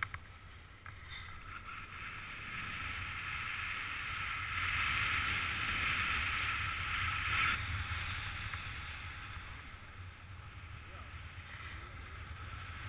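Wind rushes past steadily, swelling and easing.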